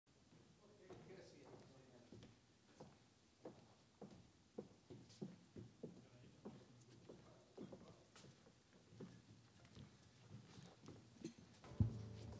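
Footsteps knock on a wooden stage.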